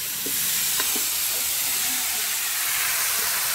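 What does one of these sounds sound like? Peanuts rattle as they pour into a metal pan.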